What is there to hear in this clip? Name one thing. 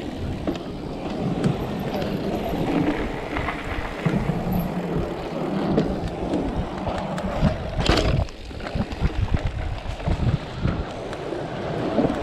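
Bicycle tyres clatter over wooden boardwalk planks.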